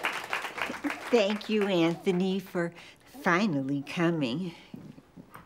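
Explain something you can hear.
An elderly woman speaks warmly and animatedly, close by.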